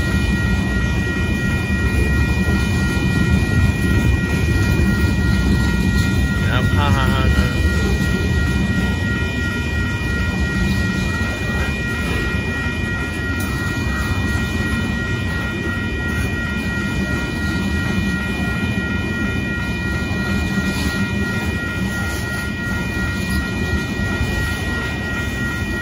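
A freight train rumbles past loudly on the tracks.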